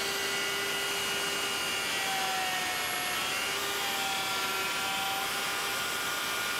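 A power router whines loudly as it cuts into wood.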